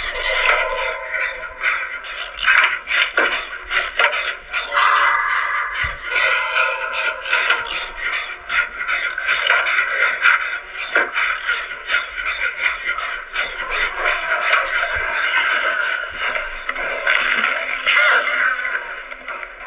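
Video game sounds play through a small phone speaker.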